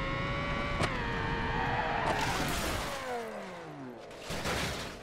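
A car engine revs high and then winds down.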